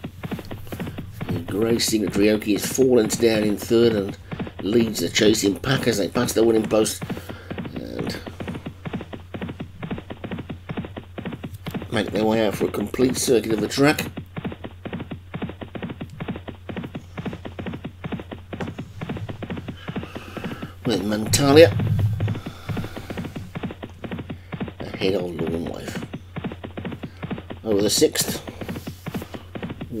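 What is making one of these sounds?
Horses gallop with a rapid drumming of hooves on turf.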